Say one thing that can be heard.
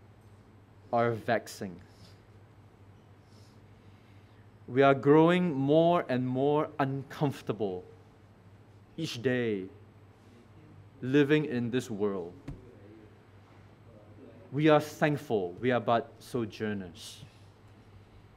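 A man speaks slowly and solemnly into a microphone, with long pauses.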